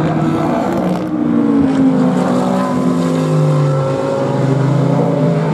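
A V10 race car engine howls as it accelerates out of a corner.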